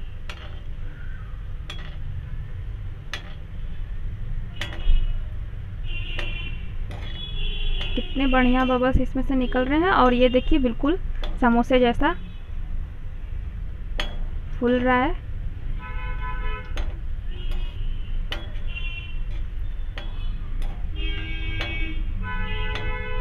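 A slotted metal ladle scrapes and taps against a metal wok.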